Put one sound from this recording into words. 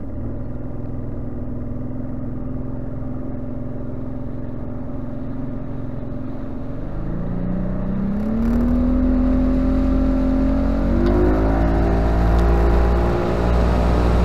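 Water rushes past a boat's hull.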